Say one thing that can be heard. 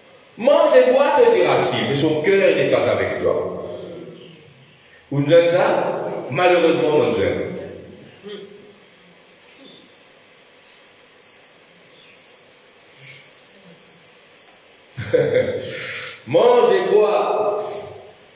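An elderly man preaches loudly and with animation through a microphone, in a large echoing hall.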